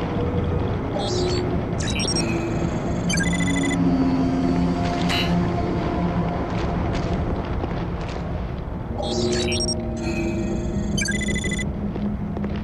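Quick electronic beeps chirp in short bursts.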